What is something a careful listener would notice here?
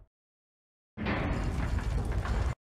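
An iron gate grinds open.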